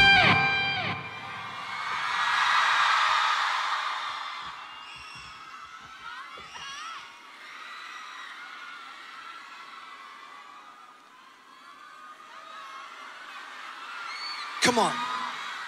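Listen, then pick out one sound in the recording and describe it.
A large crowd cheers and screams in a big open arena.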